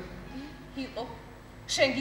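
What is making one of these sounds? A woman speaks with feeling.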